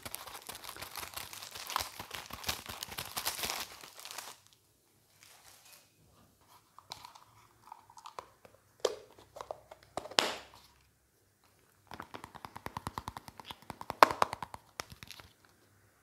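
Plastic packaging crinkles and taps close to a microphone.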